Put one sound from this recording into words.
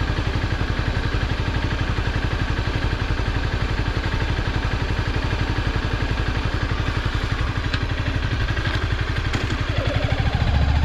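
A motorcycle engine idles with a fast, steady throb.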